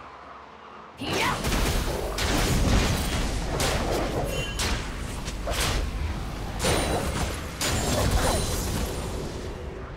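Magic blasts and hits crash and crackle in a fast video game fight.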